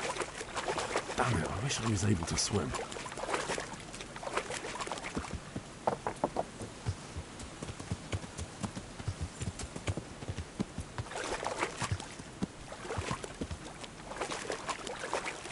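A horse splashes as it wades through shallow water.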